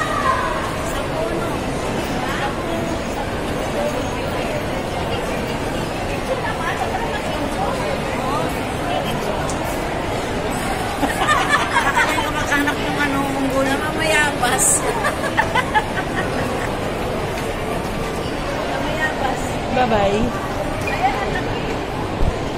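A middle-aged woman talks close to the microphone.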